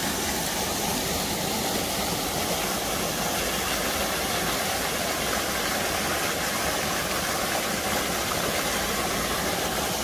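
A fountain gushes and splashes into a pool.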